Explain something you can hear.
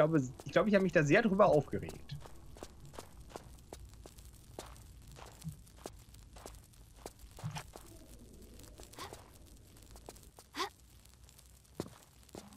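Footsteps patter quickly on a hard stone floor.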